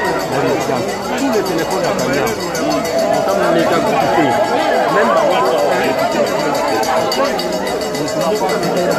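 A crowd of men and women talk and shout excitedly close by.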